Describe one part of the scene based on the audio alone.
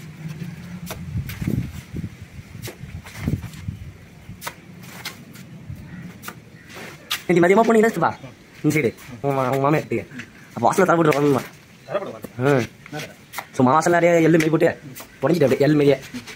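A trowel scrapes and taps against a metal pan of mortar.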